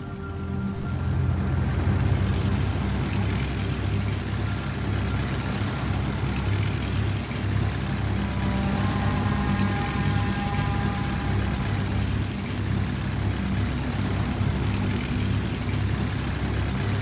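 Propeller plane engines drone steadily in a low, throbbing hum.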